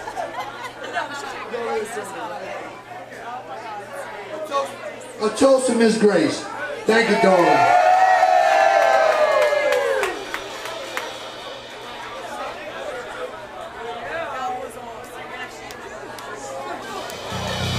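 A live band plays loudly.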